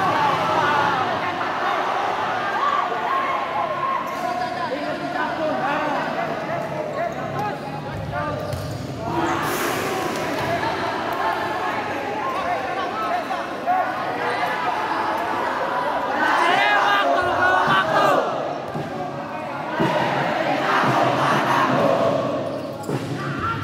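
A crowd of young people chatters and shouts in a large echoing hall.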